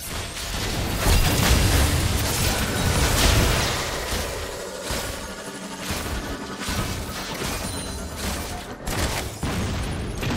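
Game spell effects crackle and blast in a fight.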